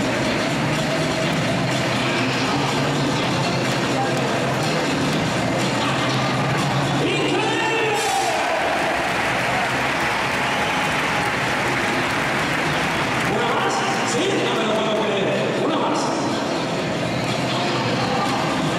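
A large crowd cheers and chatters loudly in a big echoing arena.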